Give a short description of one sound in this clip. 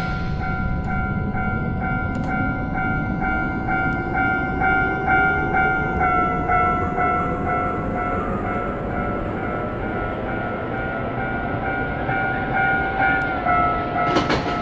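A level crossing bell rings rapidly, dropping in pitch as the train passes it.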